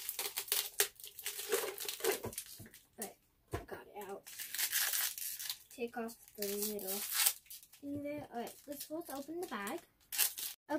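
Foil wrapping crinkles and tears.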